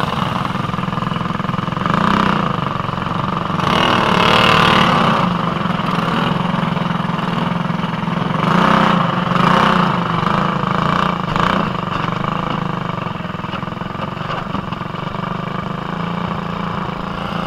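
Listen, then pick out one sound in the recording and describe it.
A kart engine idles and revs loudly close by.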